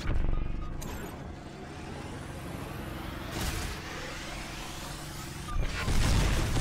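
A heavy robot's engine hums steadily.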